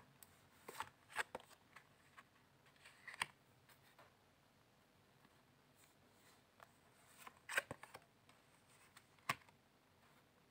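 A card slides and taps softly onto a cloth-covered table.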